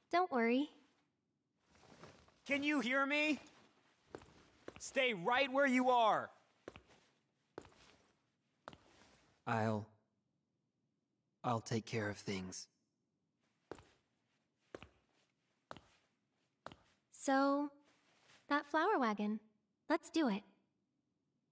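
A young woman speaks softly and gently.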